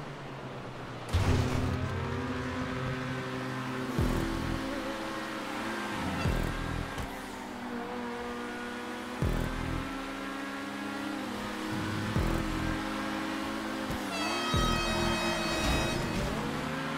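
A sports car engine roars loudly, revving up and down with quick gear shifts.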